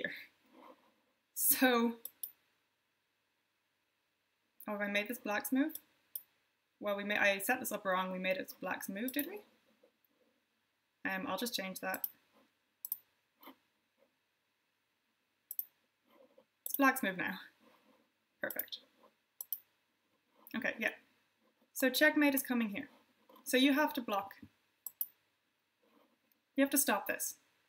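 A young woman speaks calmly and clearly into a close microphone, with pauses.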